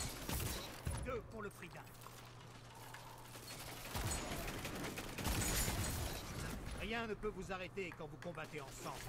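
A young man talks through a headset microphone, with animation.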